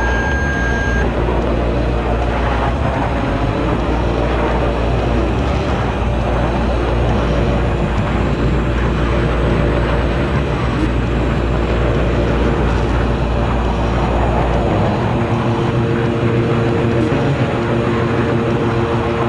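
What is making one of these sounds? Wind rushes loudly past the aircraft.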